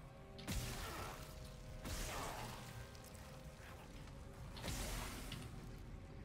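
Gunshots ring out with short bursts.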